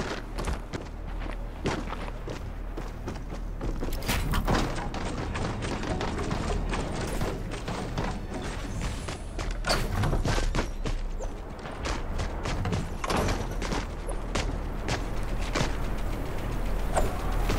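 Wooden building pieces snap into place with quick sharp clicks and thuds.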